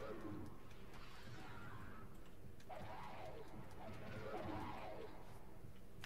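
Cartoonish fighting sounds with quick hits and squeals play in a video game.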